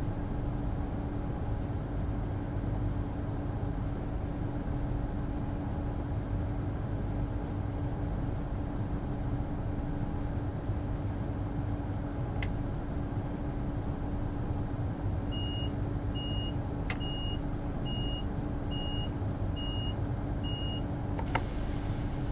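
A train's engine hums steadily while standing still.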